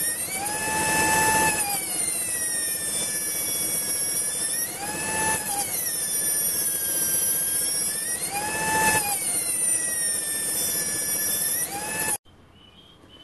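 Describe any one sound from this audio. A high-speed air grinder whines loudly, rising and falling in pitch as it grinds metal.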